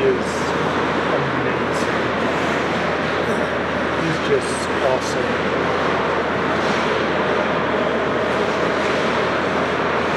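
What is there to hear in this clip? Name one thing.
Children shout in a large echoing hall.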